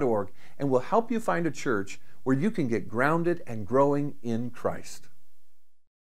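A middle-aged man speaks calmly and warmly into a close microphone.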